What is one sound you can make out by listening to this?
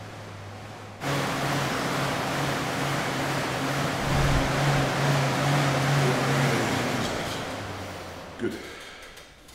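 An exercise bike's fan whirs steadily, then slows down.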